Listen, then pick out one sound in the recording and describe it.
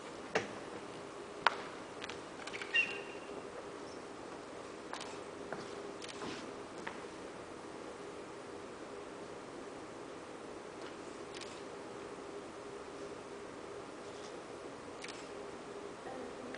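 A large paper sheet rustles as it is smoothed on the floor.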